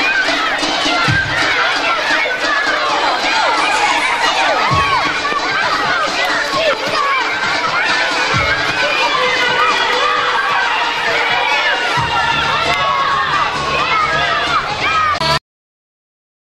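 A crowd of children chatters and shouts excitedly outdoors.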